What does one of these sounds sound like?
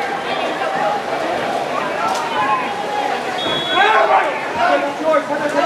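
Water splashes as swimmers thrash in a pool.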